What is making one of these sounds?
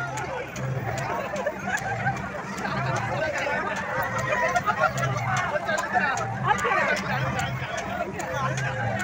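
A fairground ride rumbles and whirs as its cars spin around.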